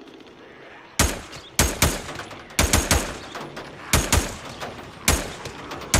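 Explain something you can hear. A rifle fires several loud shots that echo outdoors.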